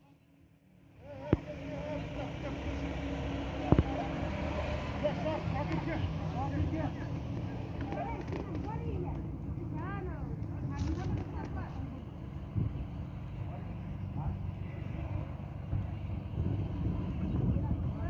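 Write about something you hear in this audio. A crowd of people chatters in the background outdoors.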